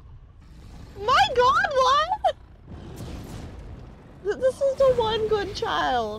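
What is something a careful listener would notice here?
A young woman speaks excitedly into a close microphone.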